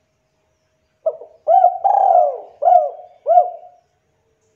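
A spotted dove coos in a short run of low, rolling notes.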